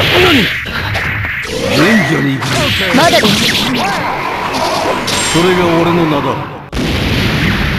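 Punches and blasts crash loudly in quick succession.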